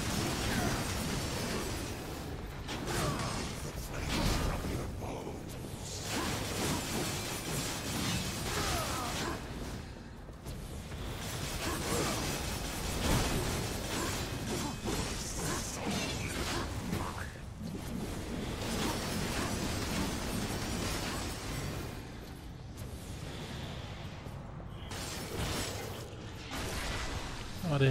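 Metal blades slash and clang in a fast fight.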